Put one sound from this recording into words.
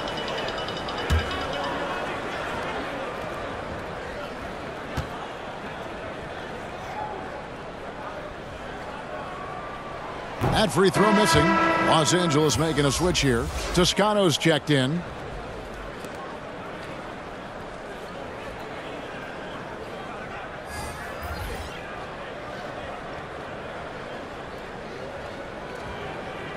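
A crowd murmurs steadily in a large echoing arena.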